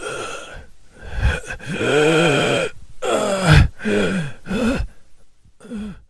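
A man groans and moans in pain.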